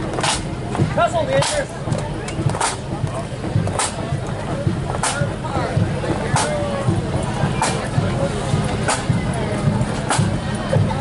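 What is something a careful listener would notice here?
Footsteps march on a paved road.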